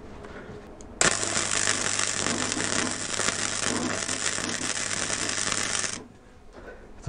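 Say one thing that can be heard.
A welding torch crackles and hisses steadily.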